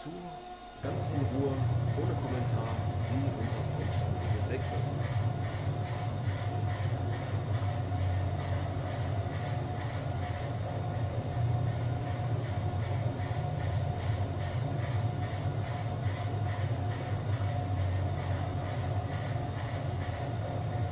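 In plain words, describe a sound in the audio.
A sawmill machine saws through a log with a loud steady roar.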